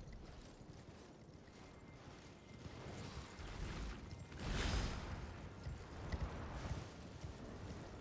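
Hooves thud on snow as a horse gallops.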